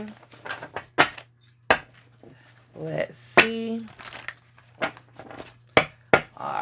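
Hands shuffle and tap a stack of paper cards.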